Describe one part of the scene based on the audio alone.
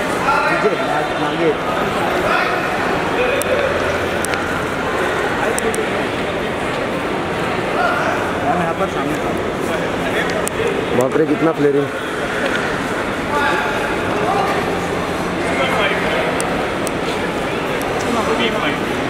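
Several men call out and shout nearby in a large echoing hall.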